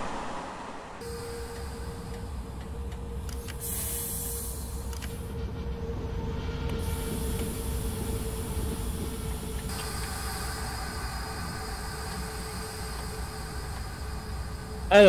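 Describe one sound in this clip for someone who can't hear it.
Train wheels rumble low on the tracks.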